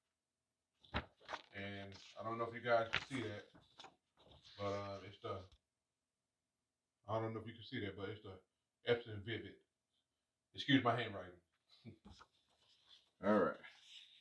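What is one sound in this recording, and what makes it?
Sheets of paper rustle as a hand flips and lifts them.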